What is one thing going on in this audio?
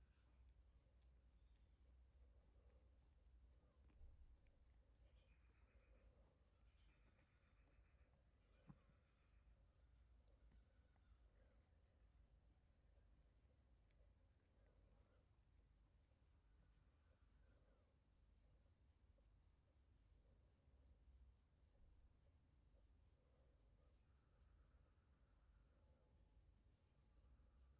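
A hand strokes a cat's fur with a soft rustle.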